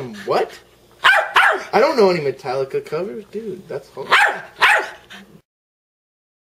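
A dog howls and yowls close by.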